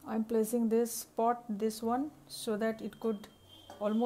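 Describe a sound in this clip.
A metal bowl clinks onto a metal pot.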